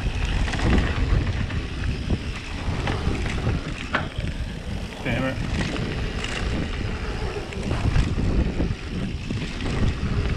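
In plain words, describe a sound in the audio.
A bicycle frame clatters and rattles over bumps.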